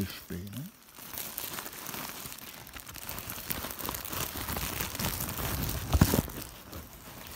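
Cloth rustles and scrapes right up close.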